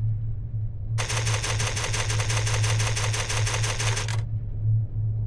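A rapid stream of electronic ticks plays.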